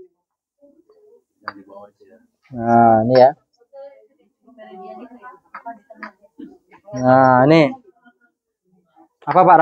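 Ceramic pots clink softly as they are picked up and set down.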